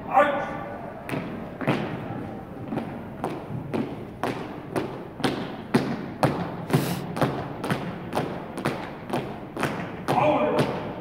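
Boots stamp in step on a wooden floor.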